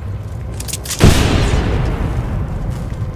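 A heavy metal door slides open with a loud whoosh.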